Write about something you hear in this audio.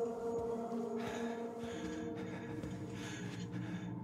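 A man breathes heavily and fast, close by.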